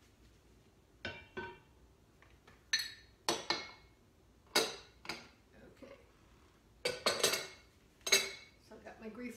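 A spoon scrapes and knocks in a bowl.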